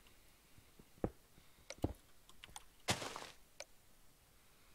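A pickaxe strikes stone blocks with a few sharp knocks.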